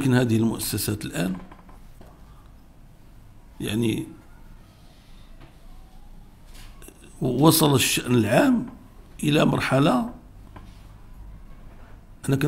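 An elderly man speaks slowly and gravely into a microphone, with pauses.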